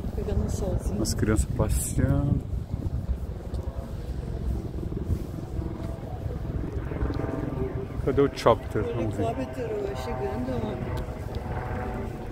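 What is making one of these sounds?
People talk casually nearby.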